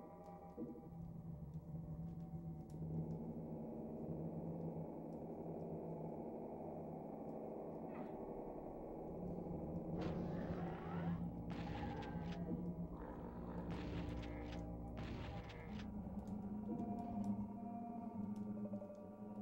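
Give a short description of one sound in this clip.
Video game music plays steadily.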